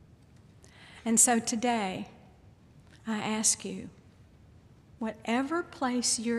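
An elderly woman speaks calmly into a microphone in a large echoing hall, with pauses between phrases.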